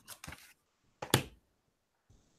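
A sketchbook thumps down onto a table.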